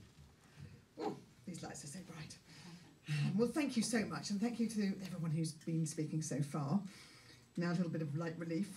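A woman speaks into a microphone in a calm, conversational way.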